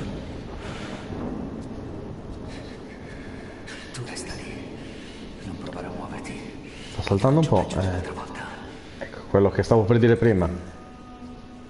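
A man speaks tensely and loudly, close by.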